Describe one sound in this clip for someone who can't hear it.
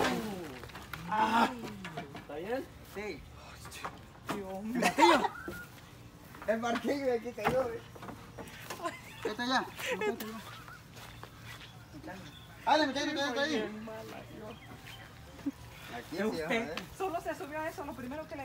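Young people talk and laugh nearby.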